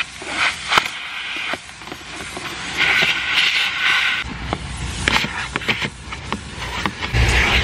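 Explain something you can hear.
A car seat's mechanism clicks and rattles as it slides along its rail.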